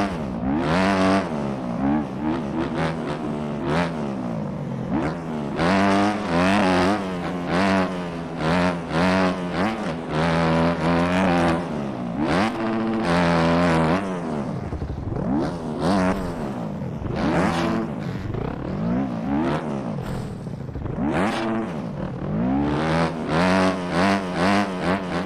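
A dirt bike engine revs hard, rising and falling in pitch with each gear change.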